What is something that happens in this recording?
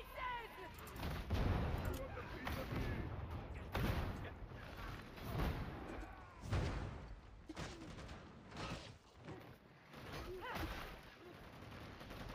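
Heavy blows thud and crash in a close fight.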